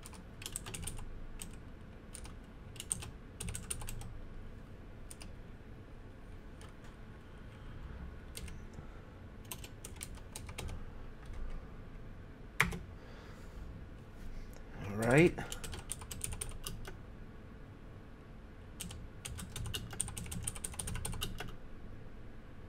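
Keys clatter on a keyboard in short bursts.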